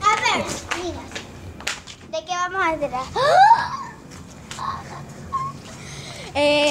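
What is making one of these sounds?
A child shouts and squeals excitedly nearby.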